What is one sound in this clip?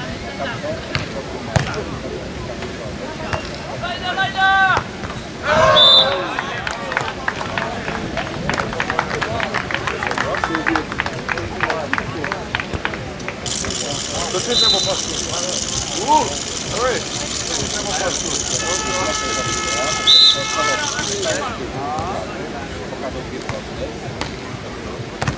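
A crowd of spectators murmurs and cheers outdoors.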